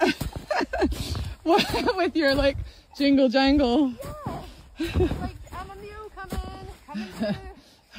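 Boots crunch through deep snow.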